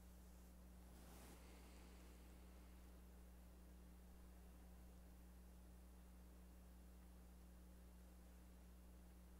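Fabric rustles softly as a flag is folded.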